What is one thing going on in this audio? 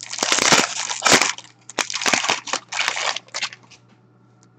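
A plastic wrapper crinkles and tears open.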